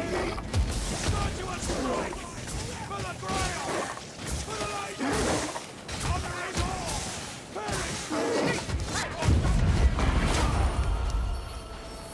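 A blade hacks into monsters with repeated heavy, wet thuds.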